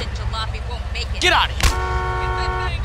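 A car door is yanked open with a thud.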